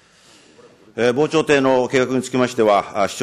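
A man speaks formally into a microphone in a large hall.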